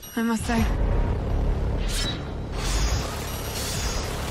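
Energy weapons crackle and zap during a fight.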